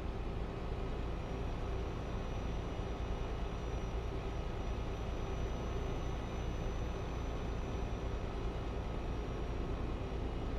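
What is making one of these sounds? Tyres roll with a steady rumble on the road.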